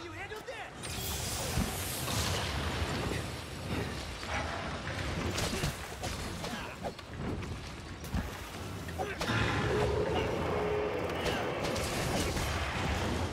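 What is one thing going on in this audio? Sword strikes clash and slash.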